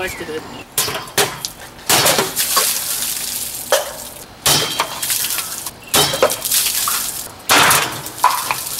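Liquid sprays and splashes out of burst cans.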